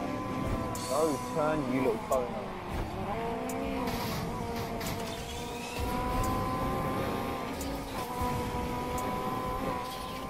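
A racing car engine roars at high speed with a steady whine.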